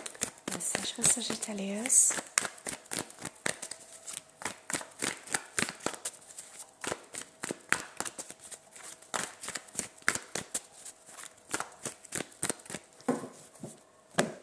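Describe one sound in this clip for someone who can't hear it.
A woman speaks briefly and calmly close to a microphone.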